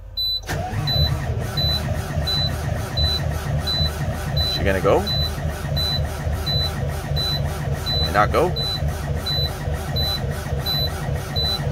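A semi truck's diesel engine idles roughly after a cold start.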